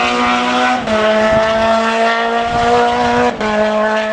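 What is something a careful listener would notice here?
A distant rally car engine drones across the hillside.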